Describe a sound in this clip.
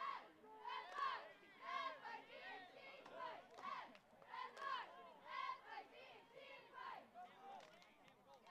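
Young women chant in unison outdoors in a rhythmic cheer.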